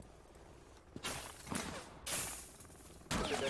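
Gunshots crack loudly and echo.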